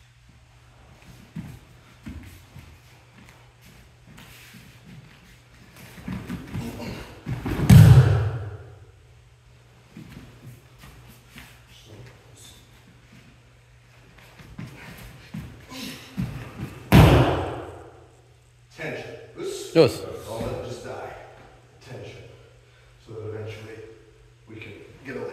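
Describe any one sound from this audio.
Uniforms rustle as two men grapple.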